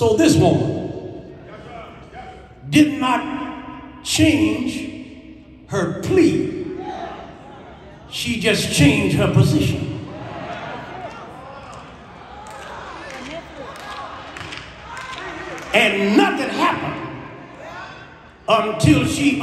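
A man preaches forcefully through a microphone over loudspeakers in a large echoing hall.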